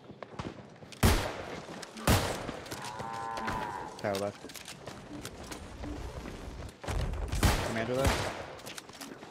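Weapons strike hard in a fight, with loud sudden blows.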